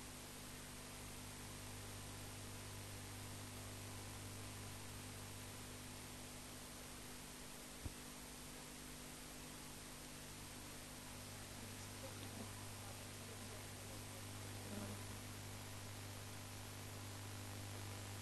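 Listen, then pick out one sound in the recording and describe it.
A marker squeaks faintly on a whiteboard.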